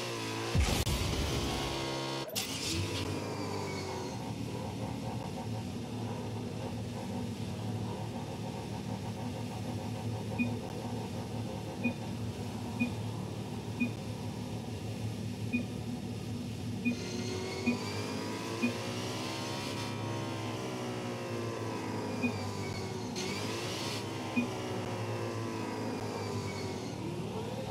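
A car engine rumbles steadily at idle.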